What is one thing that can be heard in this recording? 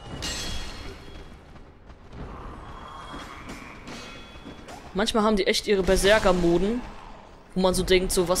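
A sword swings and strikes flesh with heavy thuds.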